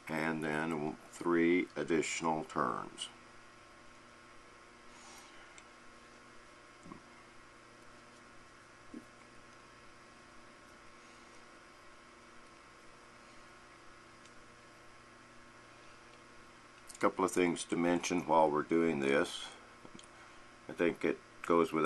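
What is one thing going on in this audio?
Small metal parts click softly against each other.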